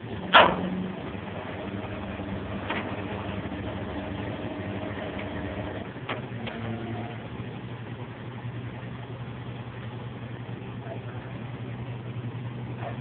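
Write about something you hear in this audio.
A car engine idles nearby with a low steady hum.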